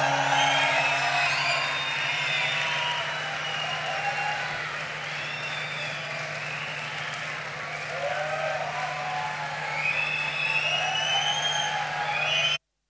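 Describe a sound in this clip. A large outdoor crowd cheers and whistles.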